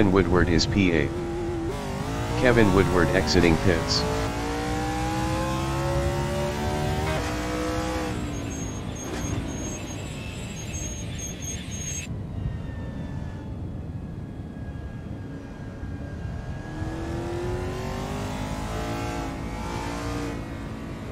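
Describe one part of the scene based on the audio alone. A racing car engine roars and revs, rising and falling in pitch as gears shift.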